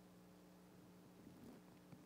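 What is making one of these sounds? A man drinks water from a plastic bottle.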